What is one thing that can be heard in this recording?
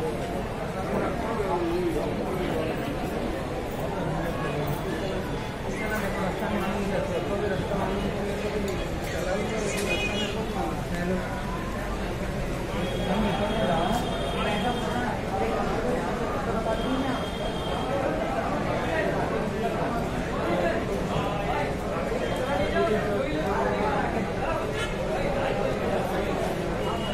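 Several men talk nearby in a low, steady murmur.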